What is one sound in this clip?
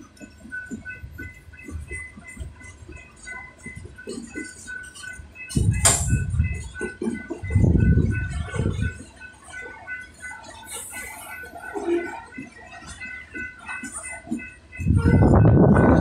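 A freight train rolls past with wheels clattering on the rails.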